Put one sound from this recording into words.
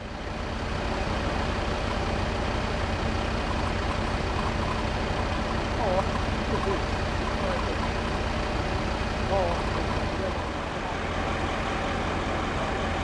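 A vehicle engine idles nearby with a low, steady rumble.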